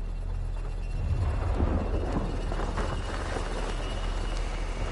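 A man speaks in a low, gravelly voice, close by.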